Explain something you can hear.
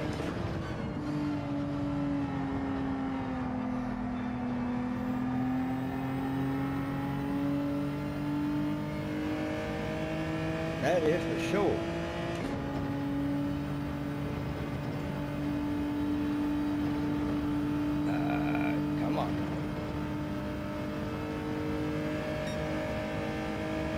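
A racing car engine hums steadily at high revs, its pitch slowly rising and falling.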